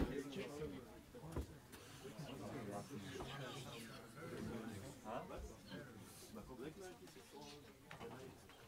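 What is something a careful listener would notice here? A small jazz band plays a lively tune.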